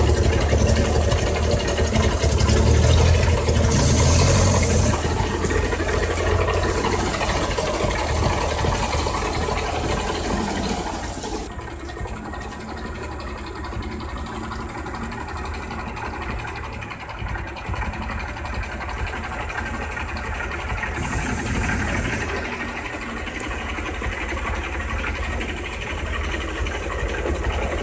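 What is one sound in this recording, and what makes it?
Truck tyres churn and splash through mud.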